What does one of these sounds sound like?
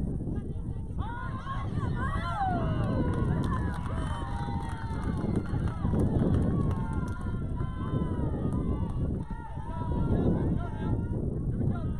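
Young players shout and cheer excitedly outdoors.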